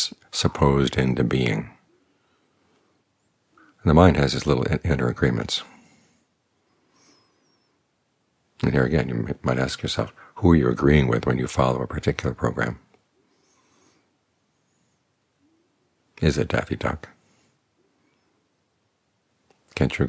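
An older man speaks calmly and slowly into a close microphone, with long pauses.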